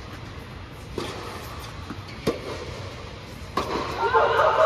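Tennis rackets strike a ball back and forth, echoing in a large hall.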